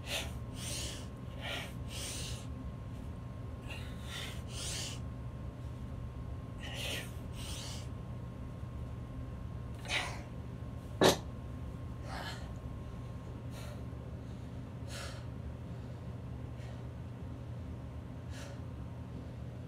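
A young man grunts and breathes hard with effort close by.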